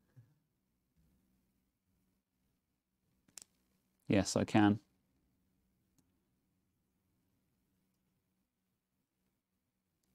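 A metal pin clicks against a plastic connector.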